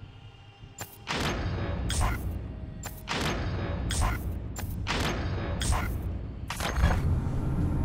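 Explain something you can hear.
Short clicks sound as menu options change.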